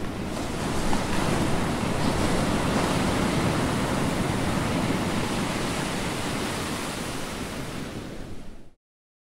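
Ocean waves wash softly against the shore.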